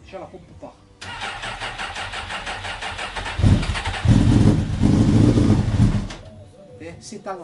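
A motorcycle engine starts and idles with a rough rattle.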